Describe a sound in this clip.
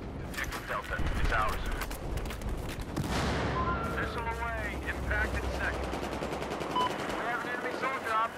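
Footsteps crunch over gravel and dirt.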